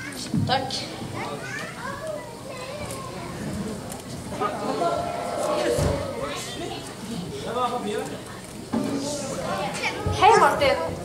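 A boy speaks into a microphone over loudspeakers in a large echoing hall.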